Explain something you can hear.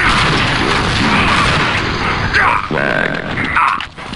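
A video game flamethrower roars.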